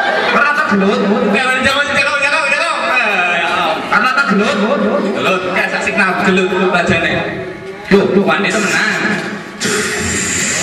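A young man talks with animation through a microphone and loudspeaker.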